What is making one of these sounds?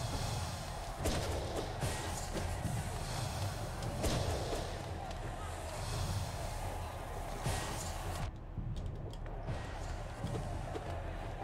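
Sword slashes and impacts crack from a game.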